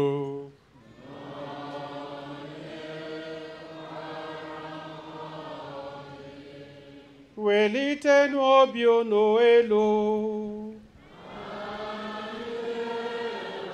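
A congregation sings in response.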